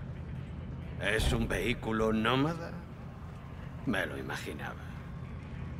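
A man speaks calmly and closely in a low voice.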